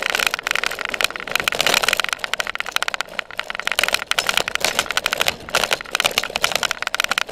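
A bicycle rattles and clatters over bumpy ground.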